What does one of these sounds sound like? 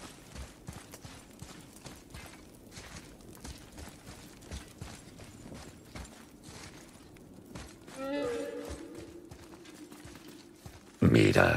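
Footsteps crunch over stone and gravel.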